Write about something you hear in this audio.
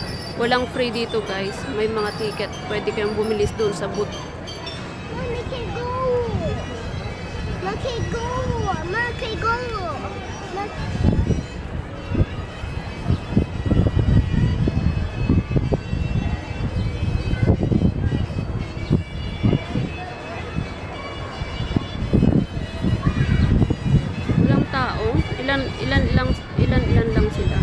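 A carousel rumbles and creaks as it turns.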